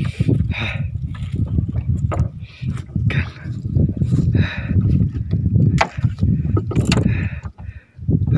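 A fish flaps and thumps against a wooden boat.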